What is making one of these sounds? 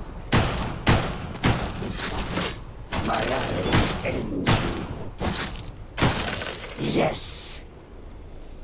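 Magic blasts and weapon hits crash in quick bursts during a fight.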